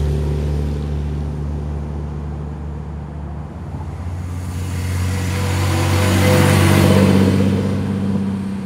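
A car engine hums and grows louder as the car approaches and passes by.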